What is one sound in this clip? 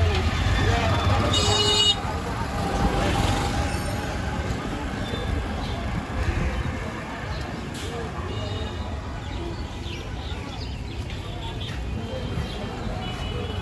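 Street traffic hums outdoors.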